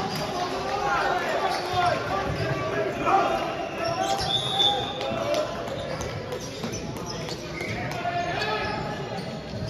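Young men call out to each other in a large echoing hall.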